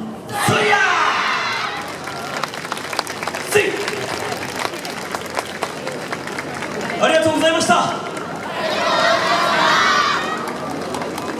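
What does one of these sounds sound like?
A group of performers shouts and chants loudly in unison outdoors.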